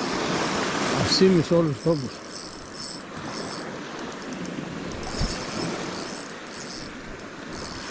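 Small waves wash and break onto a pebble beach.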